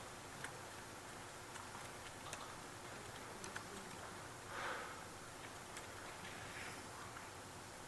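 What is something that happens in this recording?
Keys click on a keyboard.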